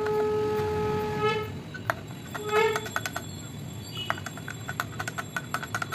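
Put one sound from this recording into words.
A spoon clinks against a glass while stirring.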